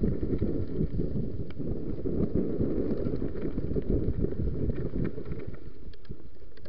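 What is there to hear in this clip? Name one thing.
Wind rumbles loudly against a microphone, close by.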